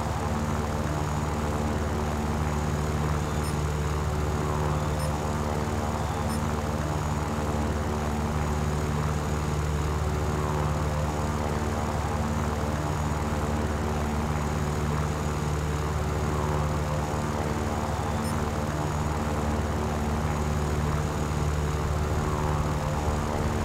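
The V12 engine of a piston-engined fighter plane drones in flight.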